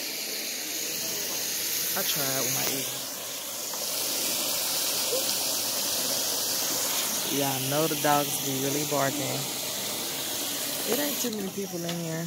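Water splashes and bubbles in a foot bath.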